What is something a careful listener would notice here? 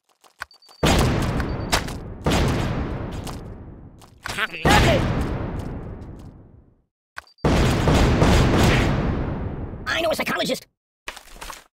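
Loud explosions boom and rumble away.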